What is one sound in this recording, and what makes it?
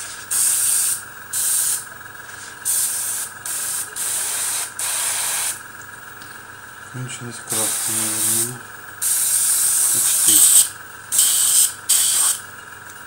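An airbrush hisses in short bursts of spraying.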